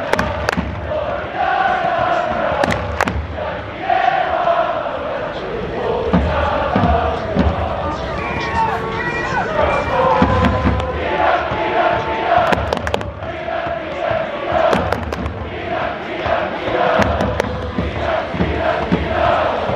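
A large crowd of fans chants loudly in unison in an open stadium.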